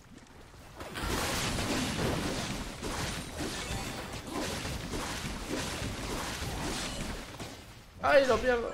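Game battle sounds clash and burst as spells hit.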